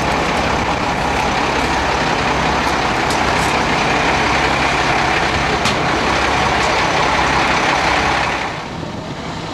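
A large truck engine idles nearby.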